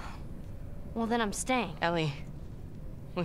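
A young girl answers softly, close by.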